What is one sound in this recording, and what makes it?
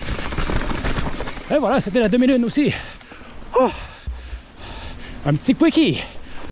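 A mountain bike rattles and clatters over bumps.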